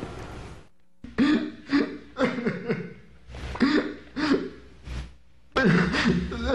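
A young man sobs and cries loudly.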